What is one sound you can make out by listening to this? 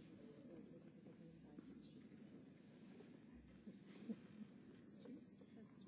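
Several men and women murmur and chat quietly at a distance in a large, echoing hall.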